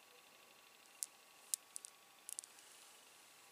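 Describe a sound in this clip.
Beaded earrings clink lightly together.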